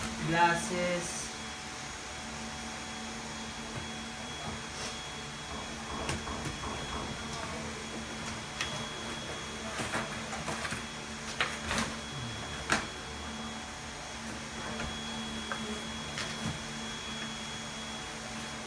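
Cardboard and paper rustle and knock as a box is unpacked.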